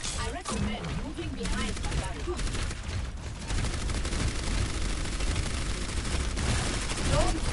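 A game weapon fires rapid energy blasts.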